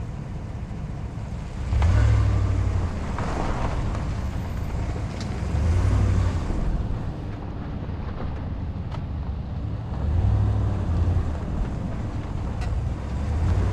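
A vehicle rolls slowly over gravel.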